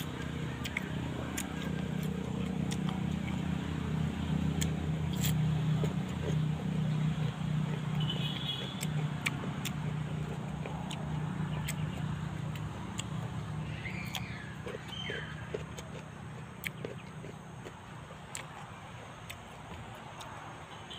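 A man chews crisp fruit close up, with wet crunching sounds.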